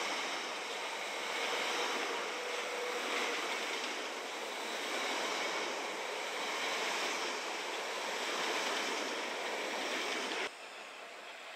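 A train pulls away along a platform with a rising electric whine.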